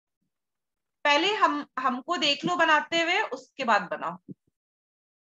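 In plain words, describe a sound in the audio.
A woman speaks with animation into a close microphone.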